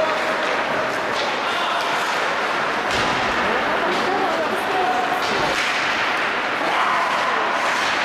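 A crowd murmurs and chatters in a large echoing arena.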